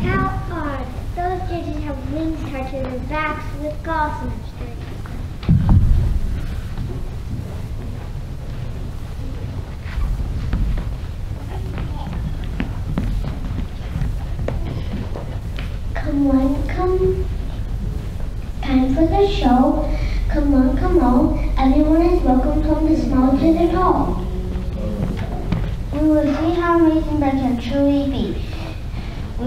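A young girl speaks clearly through a microphone in a large echoing hall.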